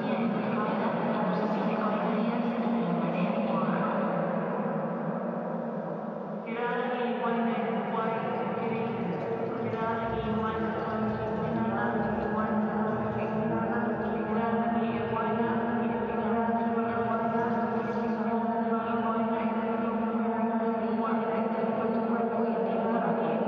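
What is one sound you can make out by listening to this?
Two women sing long, steady droning notes in an echoing room.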